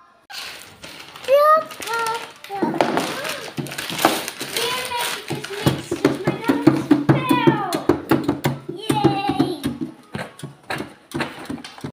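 A young girl squeals and shouts with excitement, close by.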